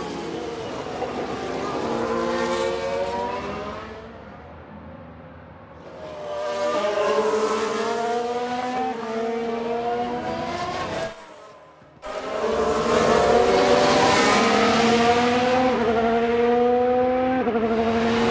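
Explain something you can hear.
Racing car engines whine loudly, rising in pitch and dropping as gears change.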